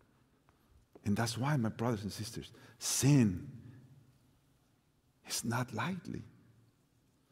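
A middle-aged man speaks with animation into a microphone in a large echoing hall.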